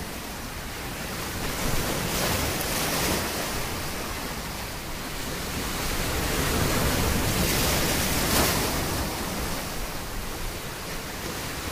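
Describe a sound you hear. Water washes and hisses over a rocky shore.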